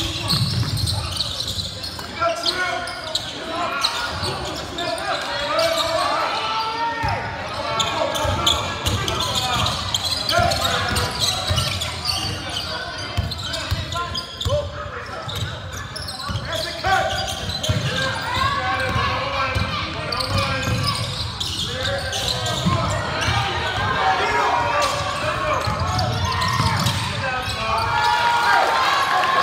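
A crowd of spectators chatters and cheers in an echoing gym.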